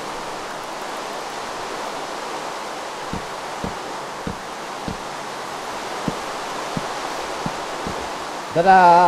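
Steady rain patters down.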